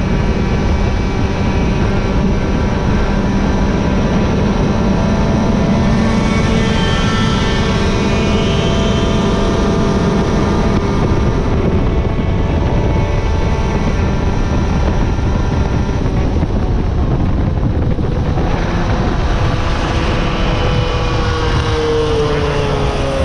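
A motorcycle engine drones steadily at speed, then drops in pitch as it slows.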